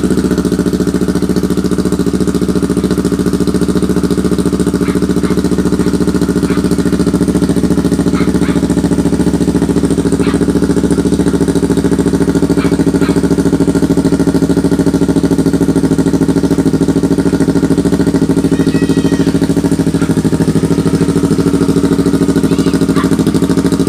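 A motorcycle engine idles with a steady, loud burbling rumble from the exhaust close by.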